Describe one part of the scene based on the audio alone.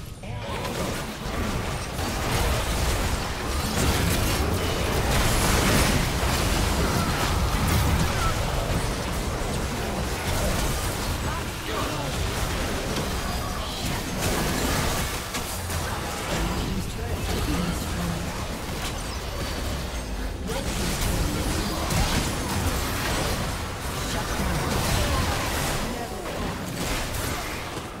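Spell effects and attack blasts crackle and boom in a fast game battle.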